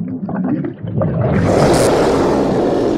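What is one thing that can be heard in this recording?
A large dinosaur roars loudly.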